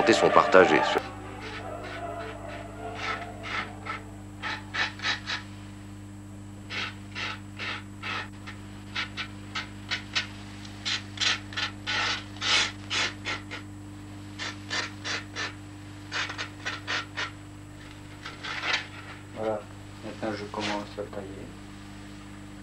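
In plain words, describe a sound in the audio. A pencil scratches across paper in short quick strokes.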